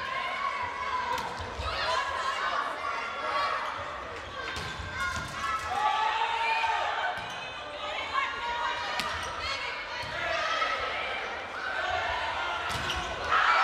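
A volleyball is spiked with a sharp smack.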